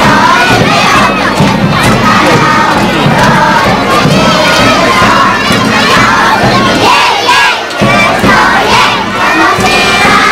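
A child beats a large drum in a steady rhythm.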